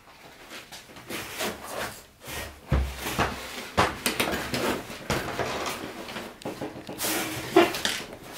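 A plastic cooler lid knocks and scrapes as it is handled.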